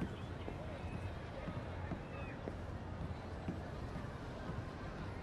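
Footsteps thud steadily on a wooden boardwalk.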